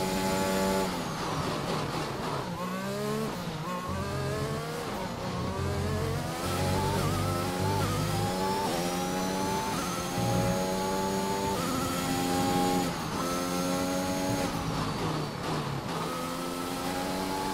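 A racing car engine drops low and burbles while slowing for corners.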